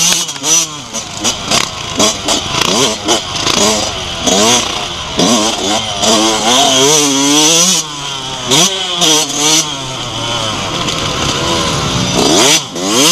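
A motorbike engine revs up and down sharply.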